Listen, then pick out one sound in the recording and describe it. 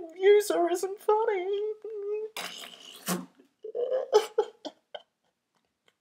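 A young man wails and sobs loudly close to a microphone.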